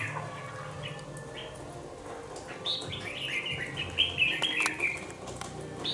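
A caged songbird sings a bright, warbling song close by.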